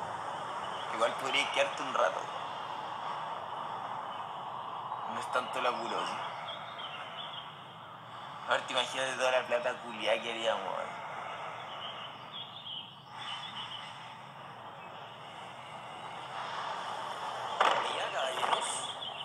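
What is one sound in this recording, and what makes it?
A second young man answers quietly, close by.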